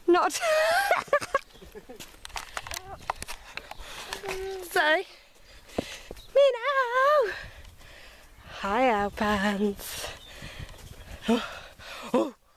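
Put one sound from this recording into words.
A young woman talks cheerfully close to the microphone.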